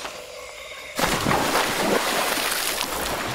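Water splashes loudly as a body drops into it.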